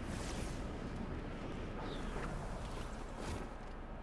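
A glider snaps open with a whoosh.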